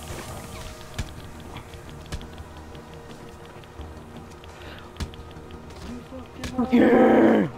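Heavy blows thud sharply during a fistfight.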